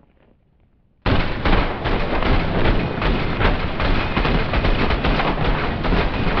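A rifle fires rapid bursts of gunshots, loud and echoing indoors.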